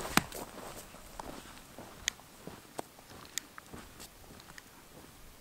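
Boots crunch on low dry vegetation with each step.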